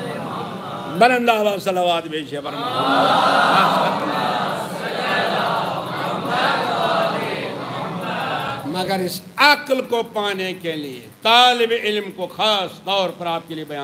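An elderly man chants and speaks in a rising and falling voice through a microphone, with echo.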